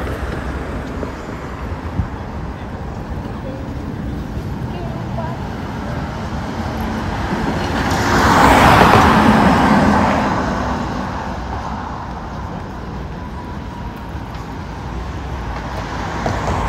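Traffic hums steadily on a nearby street.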